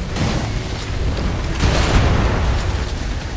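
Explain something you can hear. A shell explodes with a sudden burst.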